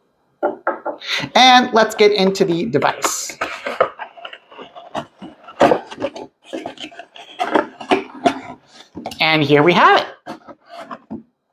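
Cardboard flaps scrape and rustle as a box is opened.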